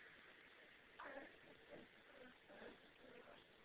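Young kittens squeak and mew softly as they tussle.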